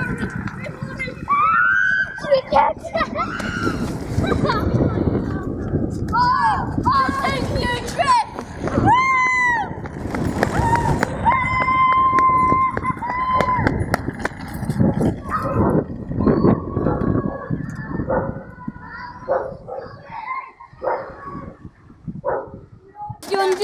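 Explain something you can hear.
Small wheels rattle and roll over asphalt.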